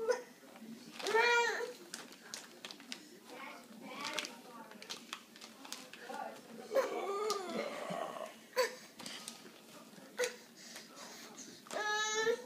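A toddler babbles in short high cries close by.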